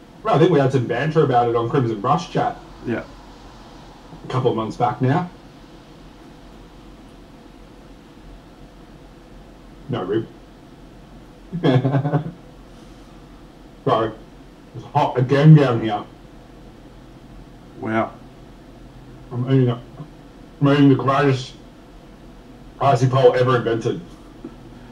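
A man talks calmly and casually into a close microphone, in short bursts with pauses.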